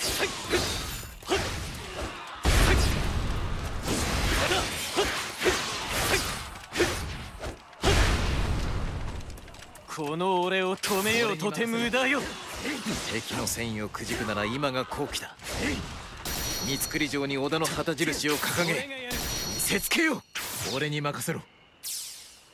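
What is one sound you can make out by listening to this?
Swords slash and clash in quick bursts of impacts.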